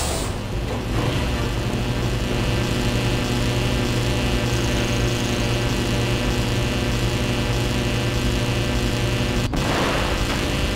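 An energy beam hums loudly and steadily.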